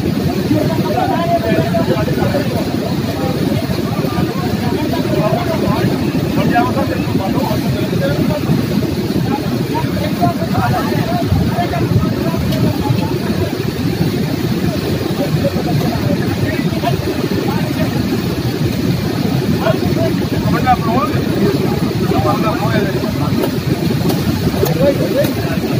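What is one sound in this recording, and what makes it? A fast river rushes loudly nearby.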